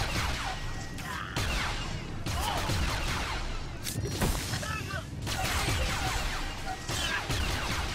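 An energy blade hums and swishes.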